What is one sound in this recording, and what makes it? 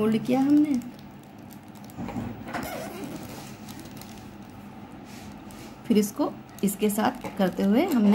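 Paper crinkles and rustles as it is folded.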